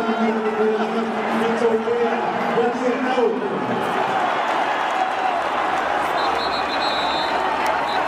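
A large crowd chants and sings loudly in unison, echoing around a stadium.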